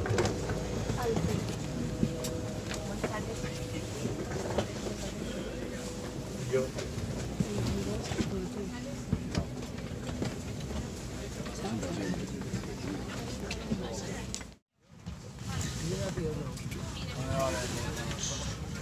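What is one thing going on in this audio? A steady low hum fills the cabin.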